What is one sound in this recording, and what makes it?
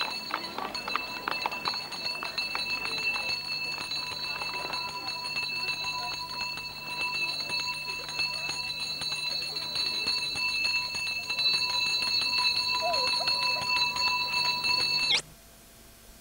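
A handbell rings on and on.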